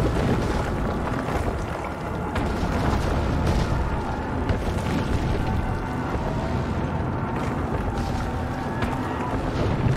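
Small footsteps patter on stone.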